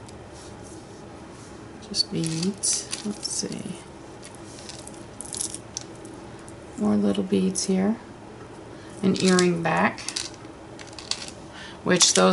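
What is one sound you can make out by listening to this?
Small beads clink and rattle as hands sort through them.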